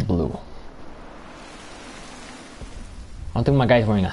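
Rain patters down steadily outdoors.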